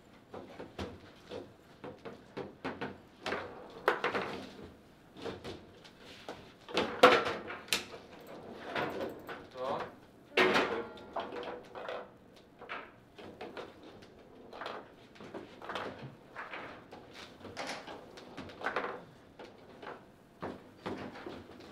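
Foosball rods clack and a ball knocks sharply against the table.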